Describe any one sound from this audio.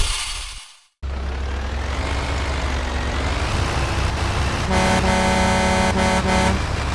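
Truck engines drone steadily as the trucks drive along a road.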